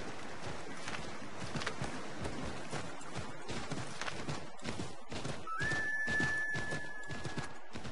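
Horse hooves thud rhythmically on snow and wooden planks.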